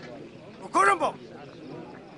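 A man shouts.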